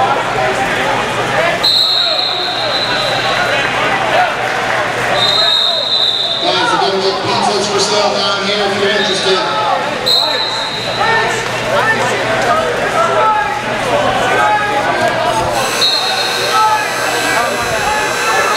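Many people talk and shout across a large echoing hall.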